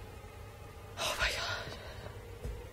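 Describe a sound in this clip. A young woman speaks briefly and quietly into a close microphone.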